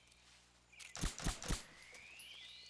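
A pistol fires several quick shots.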